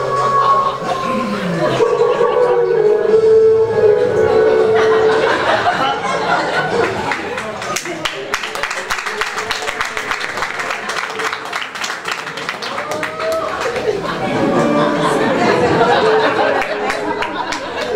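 Women speak with animation on a stage, heard from among an audience in a hall.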